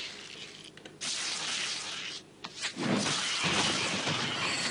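Magic spells crackle and whoosh.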